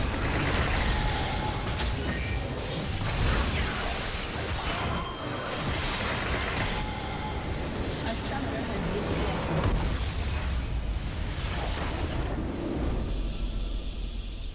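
Video game spells blast and crackle during a fight.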